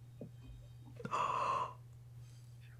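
A young woman gasps loudly in shock.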